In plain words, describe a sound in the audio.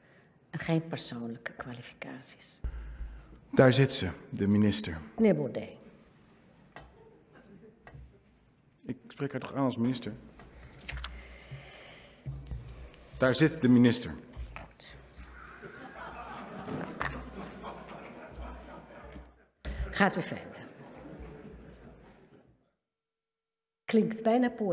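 A man speaks into a microphone in a calm, formal tone in a large hall.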